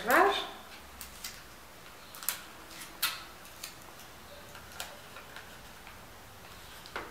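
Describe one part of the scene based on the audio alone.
Ribbon and wrapping rustle and click sharply up close as they are handled.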